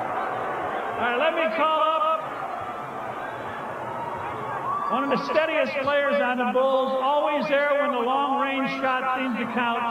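A man speaks loudly and with animation through a microphone and loudspeakers.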